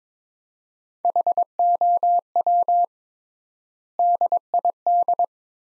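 A telegraph key sends Morse code as a steady high beep in short and long bursts.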